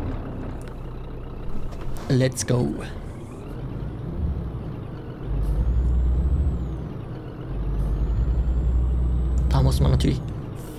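A truck engine rumbles low and steady, swelling louder at times.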